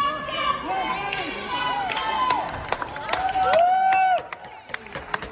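A group of women cheer and shout in the distance outdoors.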